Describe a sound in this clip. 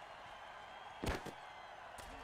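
Players' bodies collide with a heavy thud.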